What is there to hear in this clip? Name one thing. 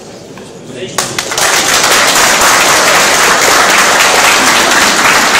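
A crowd claps and cheers loudly.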